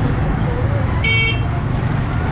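A vehicle horn beeps briefly.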